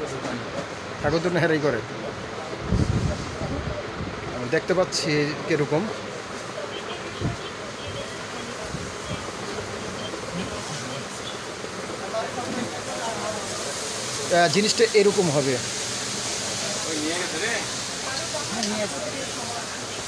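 A young man talks animatedly close by.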